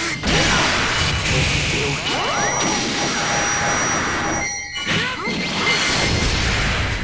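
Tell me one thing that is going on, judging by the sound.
Energy blasts roar and crackle loudly.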